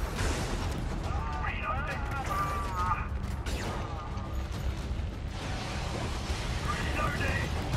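Guns fire rapidly in bursts.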